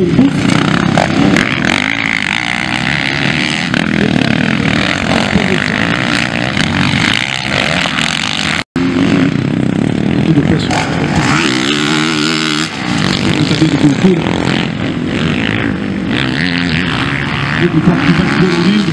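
Dirt bike engines rev loudly and roar past.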